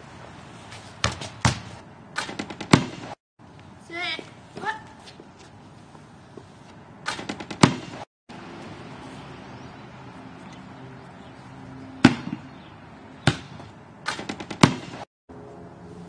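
A basketball clangs against a metal rim and backboard.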